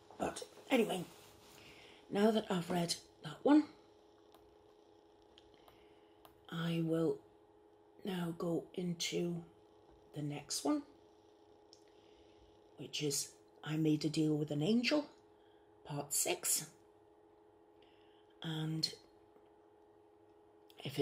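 A middle-aged woman speaks calmly close to a microphone, in short phrases with pauses.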